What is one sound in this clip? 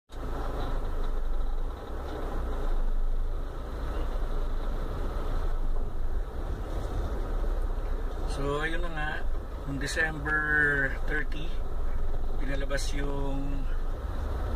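A car engine hums low and steadily.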